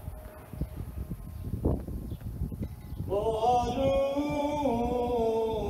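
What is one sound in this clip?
Wind rustles flags and blows against the microphone outdoors.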